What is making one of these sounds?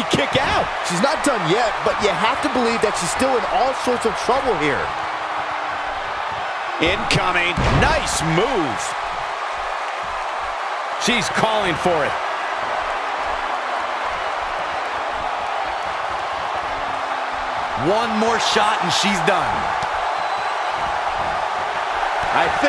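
A large crowd roars and cheers steadily in a big arena.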